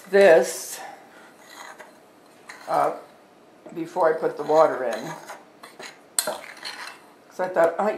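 A spoon clinks and scrapes against a glass bowl while stirring.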